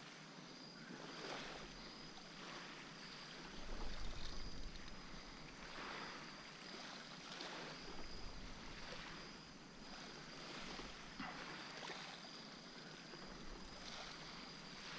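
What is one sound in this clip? Wind gusts steadily outdoors over open water, rumbling in bursts.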